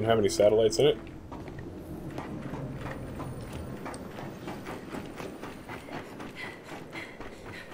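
Heavy boots thud on a metal walkway.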